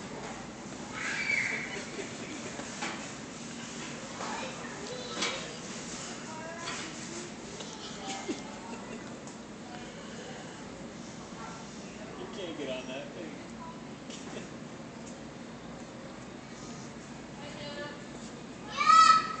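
A toddler babbles and squeals nearby.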